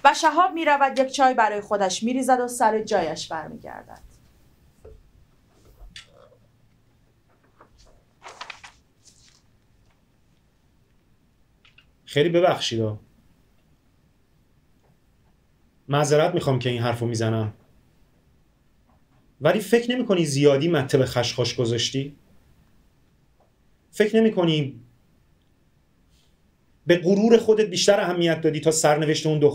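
A man reads aloud calmly, in short phrases with pauses.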